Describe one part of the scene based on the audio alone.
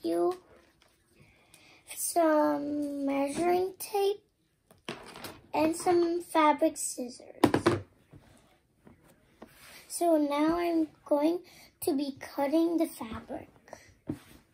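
A young girl talks calmly and close by.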